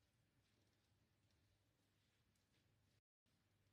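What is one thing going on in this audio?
A snooker cue tip is rubbed with chalk, squeaking softly.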